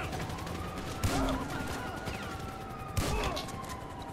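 Gunshots crack sharply a few times.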